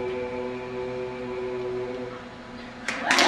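A group of young men and women sing a held chord together into microphones.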